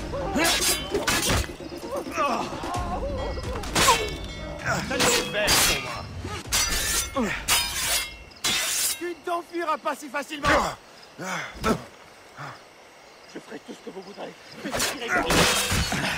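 Swords clash and ring sharply several times.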